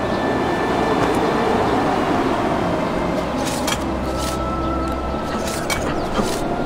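Hands and boots scrape and grip on stone while climbing.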